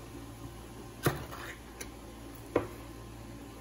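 A ring-pull can lid pops and clicks open.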